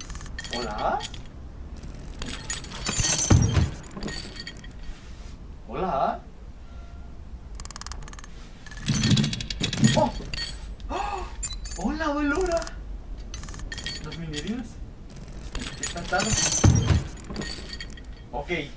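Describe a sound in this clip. A young man speaks and exclaims with animation close to a microphone.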